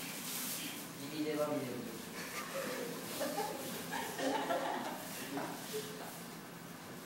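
A young man talks nearby.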